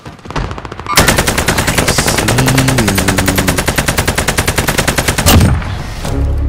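A rifle fires rapidly in a long burst.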